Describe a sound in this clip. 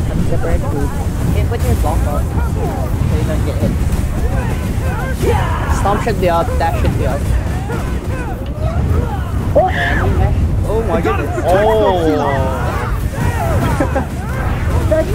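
Game combat effects whoosh and crash throughout.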